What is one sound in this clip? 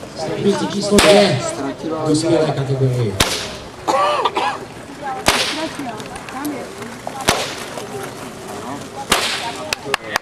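A whip cracks sharply several times.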